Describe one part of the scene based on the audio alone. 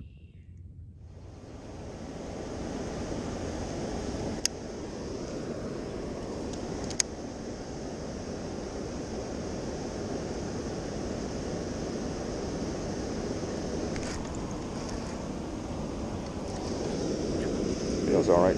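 Wind rushes steadily outdoors.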